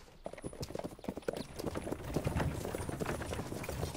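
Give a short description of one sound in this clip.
Horse hooves clop on stone.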